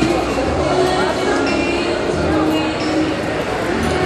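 A spoon clinks against a small glass.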